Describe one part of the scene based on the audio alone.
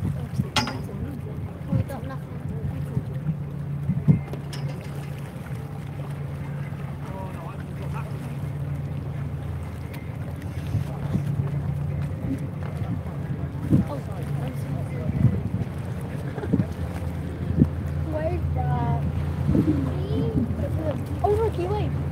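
A large ferry's engine rumbles steadily nearby.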